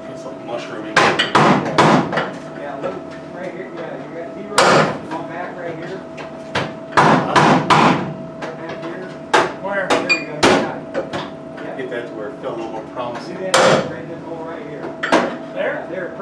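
Tools clank and knock against the metal structure of an aircraft.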